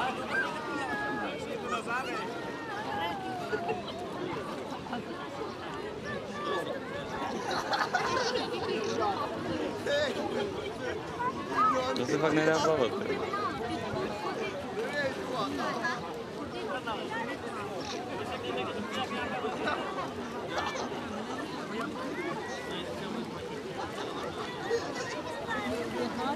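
Water splashes gently as swimmers move.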